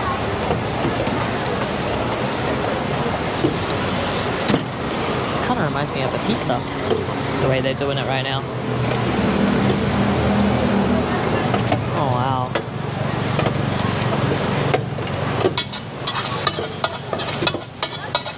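A metal scraper taps and chops on a griddle.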